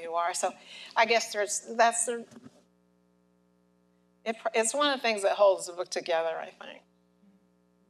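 An adult speaks calmly through a microphone in a large hall.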